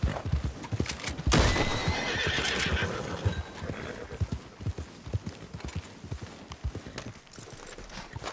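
Horse hooves gallop over the ground.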